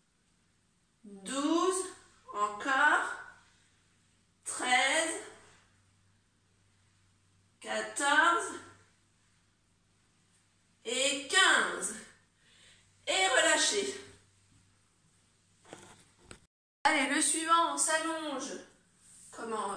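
A young woman speaks calmly in short phrases close by, pausing between them.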